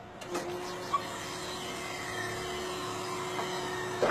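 An engine hums steadily.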